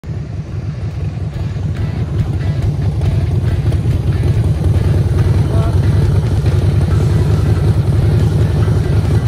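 A motorcycle engine rumbles with a deep, throbbing beat as the bike rolls closer and idles nearby.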